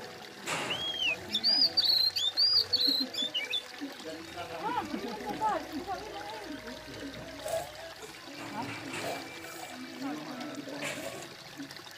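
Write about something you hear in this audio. A young child gulps a drink.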